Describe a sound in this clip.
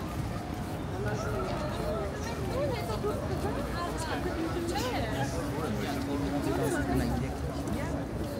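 Young men and women talk nearby as they walk past.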